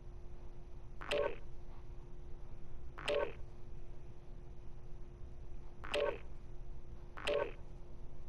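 Boots crunch in slow footsteps on the ground.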